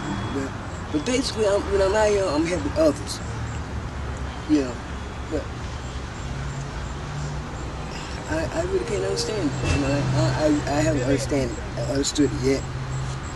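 An elderly woman speaks quietly and slowly nearby.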